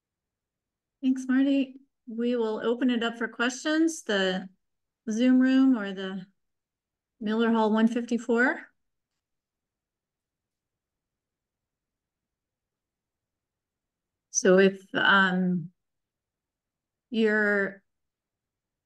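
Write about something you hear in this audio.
A middle-aged woman speaks calmly over an online call, in short bursts with pauses.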